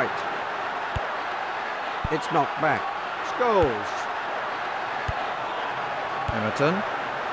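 A football is kicked with sharp thuds, again and again.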